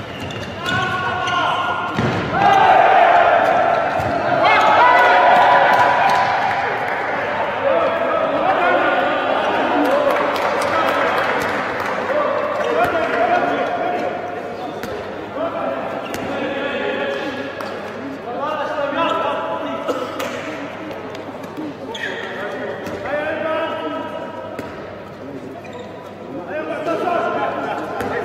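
Sneakers squeak on a hard indoor court.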